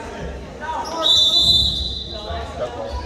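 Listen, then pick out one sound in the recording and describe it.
A referee's whistle blows once.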